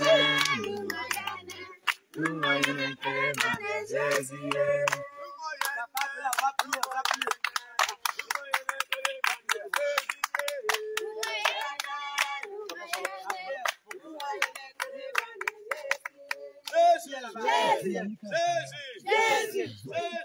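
Women clap their hands in rhythm.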